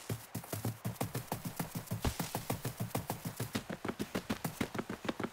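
Quick footsteps run steadily through grass.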